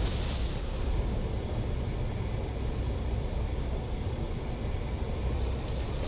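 A hovering vehicle's engine hums low and steady.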